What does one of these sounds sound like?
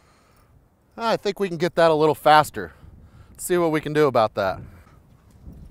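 A man speaks calmly and close by outdoors.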